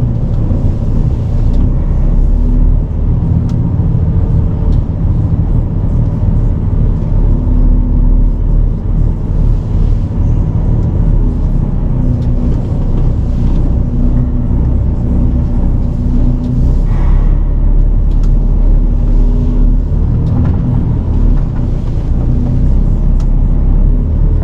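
A truck's diesel engine rumbles steadily from inside the cab.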